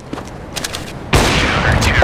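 A sniper rifle fires a single loud shot.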